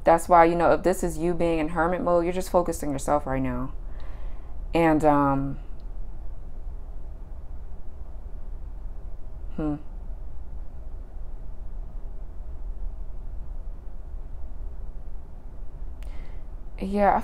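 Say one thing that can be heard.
A woman speaks calmly and close to a microphone, with pauses.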